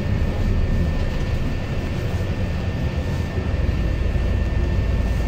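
A vehicle engine rumbles steadily while driving along a street.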